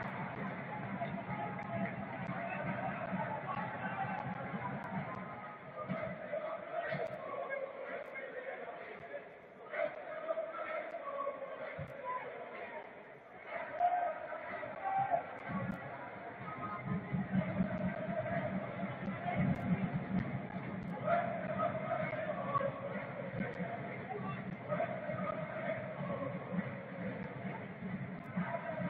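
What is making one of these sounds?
A stadium crowd murmurs and chants in a large open space.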